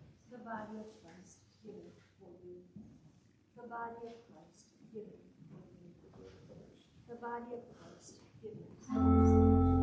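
A man speaks softly in a hall with a slight echo.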